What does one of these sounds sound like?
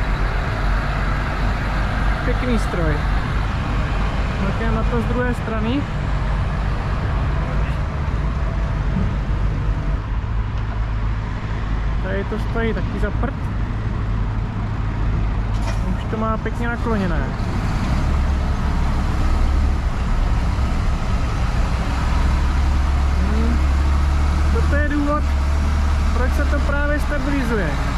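A heavy truck engine rumbles steadily close by.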